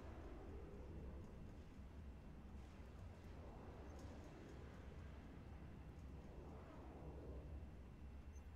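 Spaceship engines rumble low and steady.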